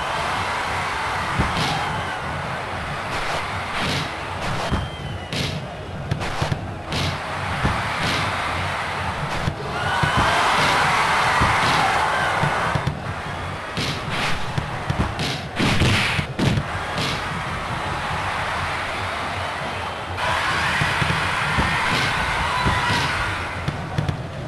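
A crowd cheers throughout a stadium.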